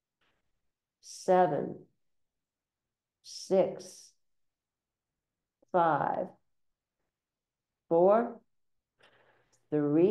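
An elderly woman speaks calmly in short, spaced phrases, close to a microphone.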